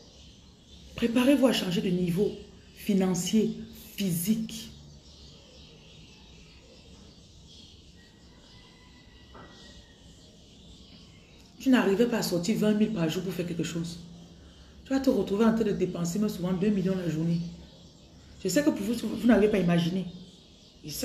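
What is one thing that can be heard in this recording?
A young woman speaks with animation close to a microphone, pausing between bursts.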